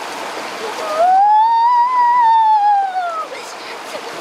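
A young boy cries out in a long, high, rising and falling wail close by.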